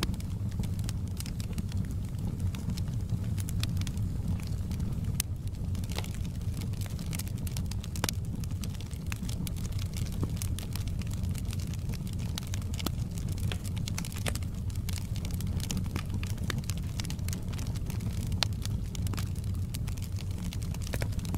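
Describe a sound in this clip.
Flames roar with a low, steady rumble.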